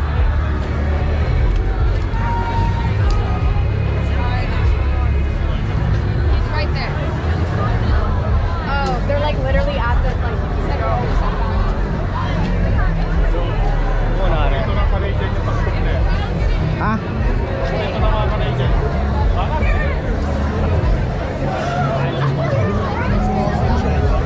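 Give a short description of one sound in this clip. A large crowd of young men and women chatters and calls out all around outdoors.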